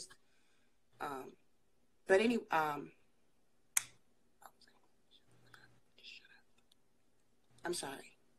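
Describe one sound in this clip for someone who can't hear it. A woman speaks in short bursts through a phone call, with pauses in between.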